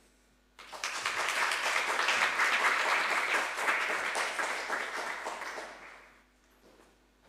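An audience applauds in a hall.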